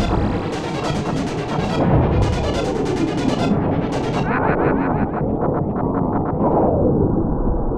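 Laser blasts fire in quick bursts.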